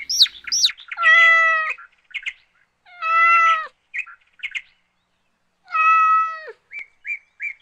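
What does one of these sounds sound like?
A cat meows several times.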